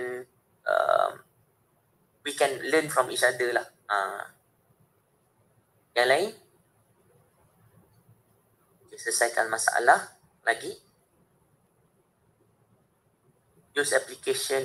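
A man speaks calmly in bursts over an online call.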